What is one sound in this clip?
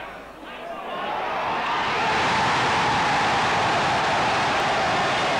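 A stadium crowd roars loudly as a goal is scored.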